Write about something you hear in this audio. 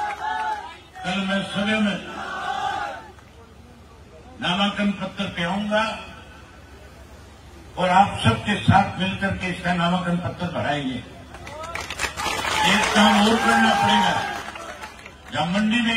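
A man speaks forcefully through a loudspeaker, in bursts with pauses.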